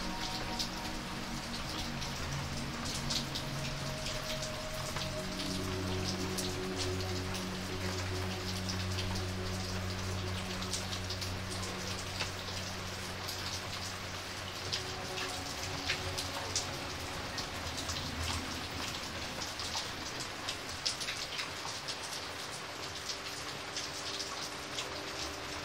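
Heavy rain splashes steadily onto a puddle.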